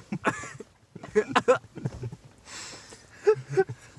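A second young man laughs nearby.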